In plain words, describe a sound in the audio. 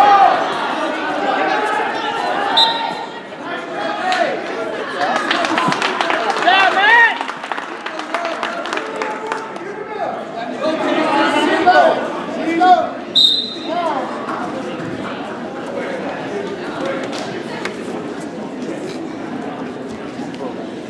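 A crowd of spectators shouts and cheers in an echoing gym.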